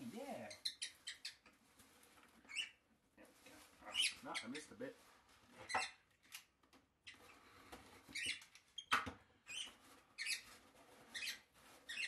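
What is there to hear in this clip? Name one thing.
Cardboard flaps rustle and tear as a parcel is opened.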